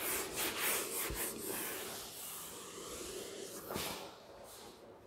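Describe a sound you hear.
A cloth rubs and squeaks across a whiteboard.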